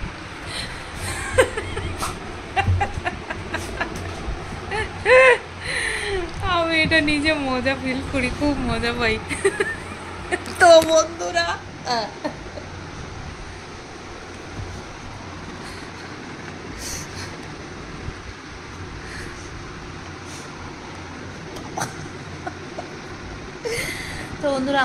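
A young woman talks and laughs close by, with animation.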